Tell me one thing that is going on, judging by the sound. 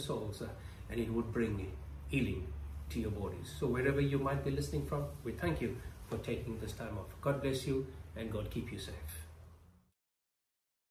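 A middle-aged man speaks calmly and steadily to a microphone close by.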